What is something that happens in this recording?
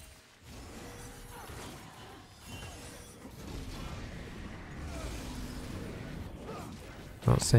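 Game spells whoosh and zap during a fight.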